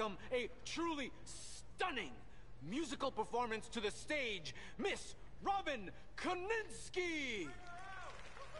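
A man announces loudly and theatrically to an audience in a large echoing hall.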